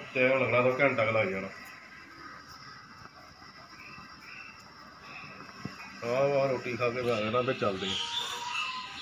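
A middle-aged man talks on a phone close by.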